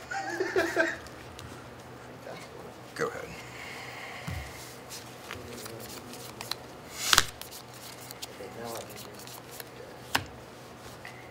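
Playing cards shuffle and slap on a table.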